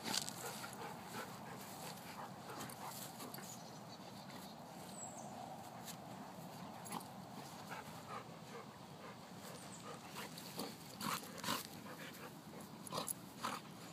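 A dog growls playfully.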